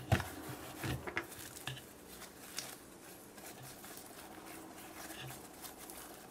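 Small foam beads rustle and crunch against slime.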